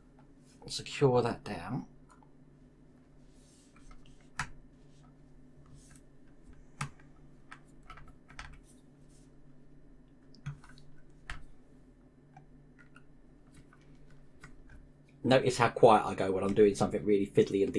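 A screwdriver clicks and scrapes against small metal parts.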